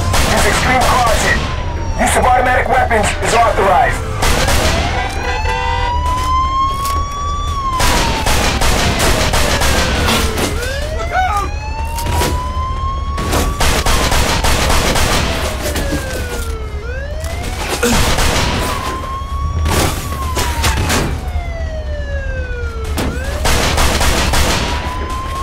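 Pistol shots crack repeatedly.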